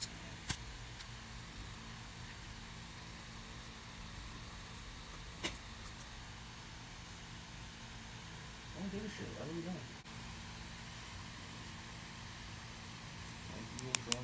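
A marker pen squeaks and scratches softly on paper.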